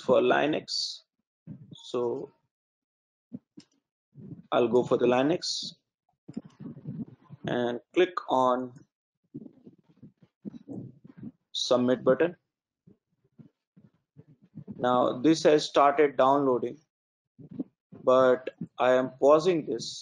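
A man talks calmly into a close microphone, with pauses.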